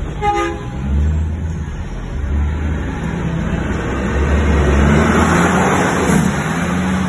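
A big truck engine roars loudly as it passes right alongside.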